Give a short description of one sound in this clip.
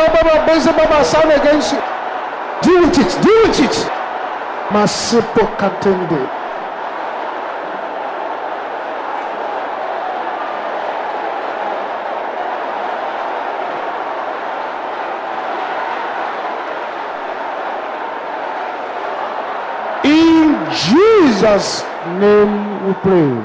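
A man preaches forcefully into a microphone, shouting in bursts.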